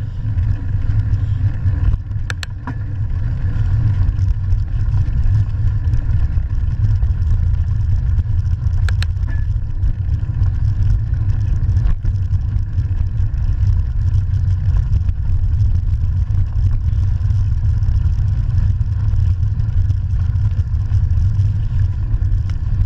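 Bicycle tyres crunch over a gravel path.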